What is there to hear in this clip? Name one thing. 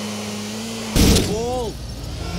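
A car crashes into another car with a loud bang.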